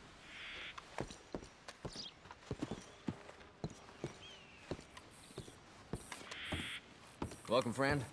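Boots thump steadily on wooden boards.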